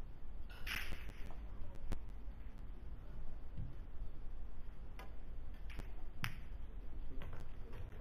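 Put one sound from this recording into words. Pool balls click sharply against each other.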